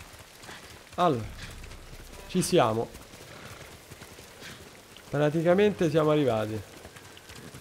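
A man speaks into a microphone with animation.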